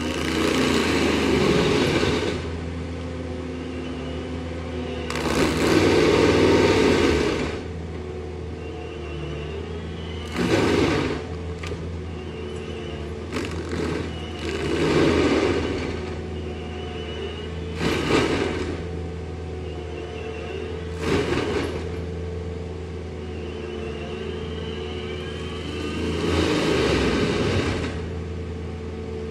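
A mulcher grinds into a tree stump in loud roaring bursts.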